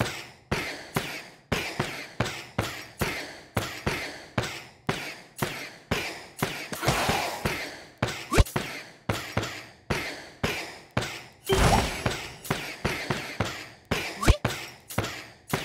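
Game sound effects chime and pop in quick succession as pieces merge and attack.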